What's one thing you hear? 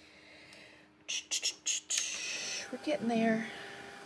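A heat gun whirs, blowing air.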